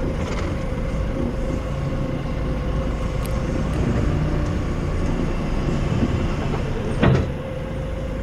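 A diesel forklift engine idles close by.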